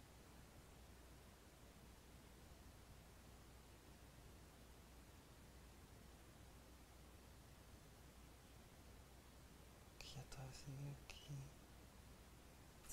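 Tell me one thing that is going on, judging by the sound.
A young man breathes slowly and heavily in his sleep.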